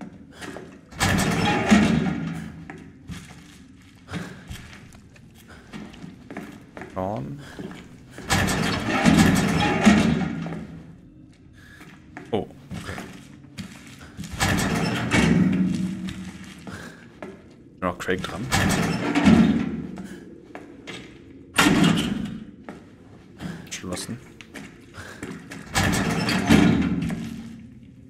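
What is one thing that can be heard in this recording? Heavy metal doors scrape and clang open, again and again.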